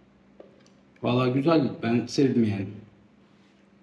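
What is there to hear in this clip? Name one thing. A middle-aged man speaks close to the microphone.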